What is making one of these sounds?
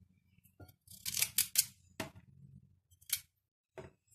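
A knife cuts through a carrot.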